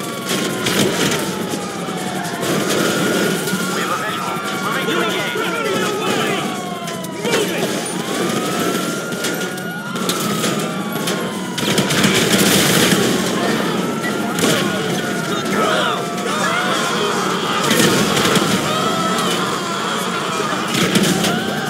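A car engine roars.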